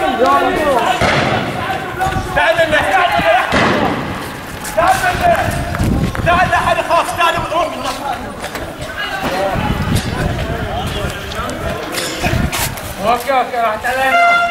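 Young men shout and chant loudly nearby, outdoors.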